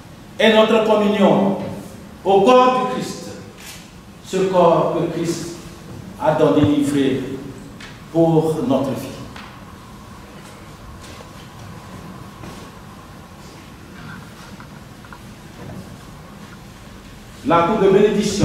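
A man sings out loud, long phrases that echo in a large room.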